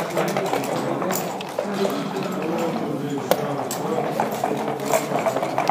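Game pieces click and slide on a wooden board.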